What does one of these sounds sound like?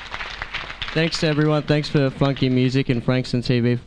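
A man speaks through a microphone and loudspeakers.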